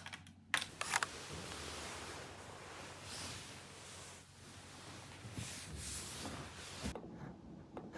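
Bedding rustles and swishes.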